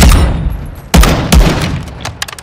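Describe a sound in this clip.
A sniper rifle fires a loud, booming shot.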